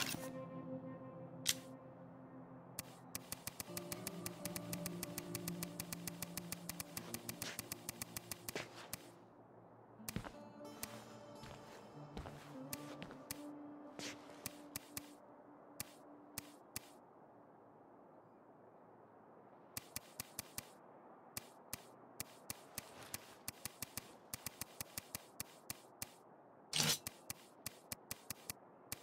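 Soft menu clicks tick quickly as a selection moves through a list.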